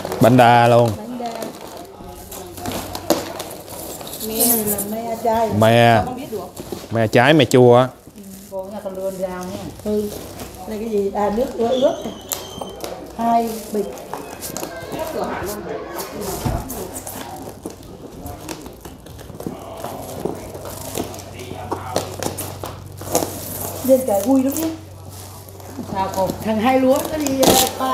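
A knife scrapes and cuts through packing tape.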